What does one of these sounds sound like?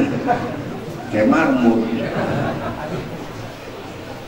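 Several women talk quietly nearby.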